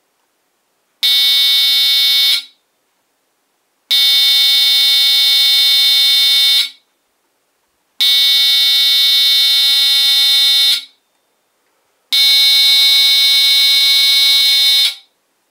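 An electronic buzzer sounds loudly in several long, steady bursts, each about three seconds.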